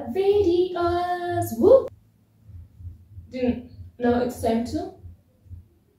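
A young woman sings loudly and expressively close by, in short phrases.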